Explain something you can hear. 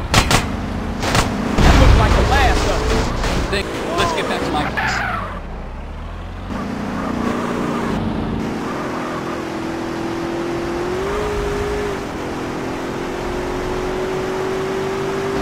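A car engine revs and hums steadily while driving.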